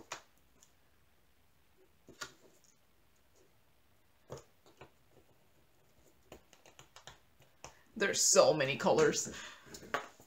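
A small plastic container clicks as it is handled.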